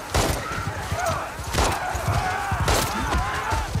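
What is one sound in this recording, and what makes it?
Gunshots ring out sharply a few times.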